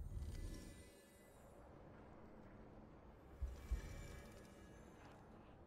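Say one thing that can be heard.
A magical shimmer sparkles and chimes, then fades.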